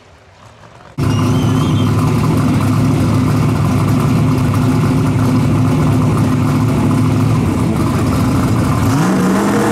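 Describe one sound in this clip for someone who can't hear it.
Drag cars idle with a deep, lumpy rumble.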